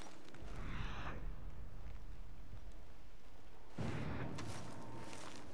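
Grass rustles as someone crawls through it.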